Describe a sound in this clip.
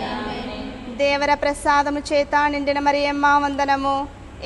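A woman sings a melody clearly close by.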